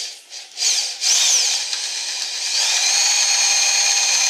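An electric drill whirs loudly, boring into wood.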